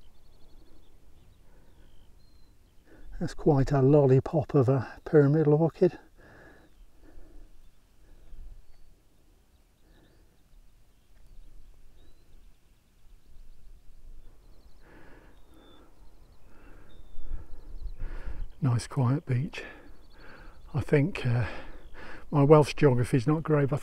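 Wind blows softly across open ground.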